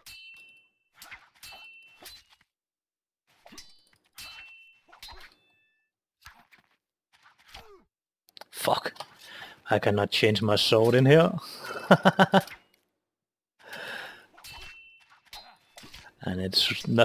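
Steel swords clash and ring.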